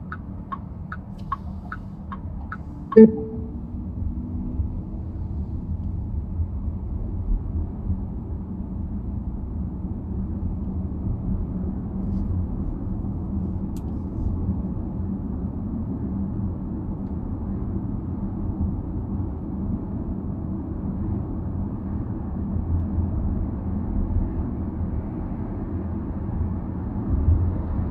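Tyres roll on pavement with a low, steady rumble.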